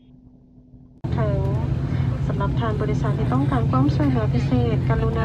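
A woman talks close up with animation.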